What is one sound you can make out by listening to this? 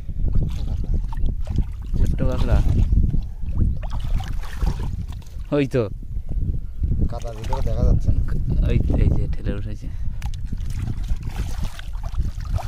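Feet slosh and squelch through shallow water and mud.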